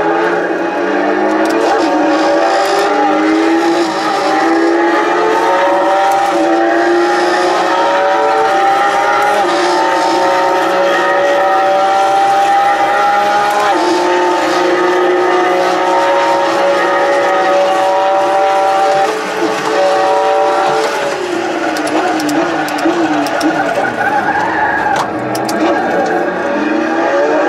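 A simulated race car engine climbs through the gears over loudspeakers.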